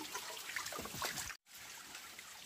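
Water splashes as it pours from a bamboo tube.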